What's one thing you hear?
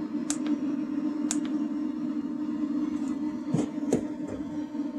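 A plastic device clicks as fingers press its button.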